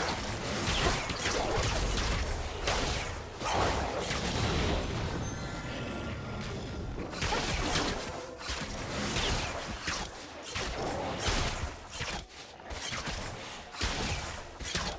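Spell effects whoosh and crackle in a fast fight.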